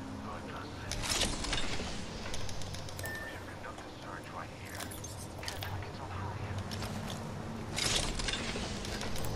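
A metal crate clanks open with a rattle.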